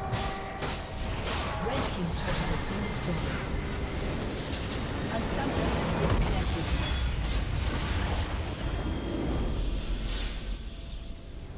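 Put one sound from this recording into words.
Game spell effects crackle and clash in a battle.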